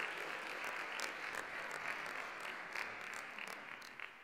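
A man strikes a marimba with mallets.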